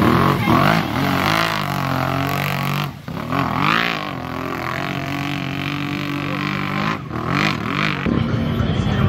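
An engine revs hard, rising and falling in pitch.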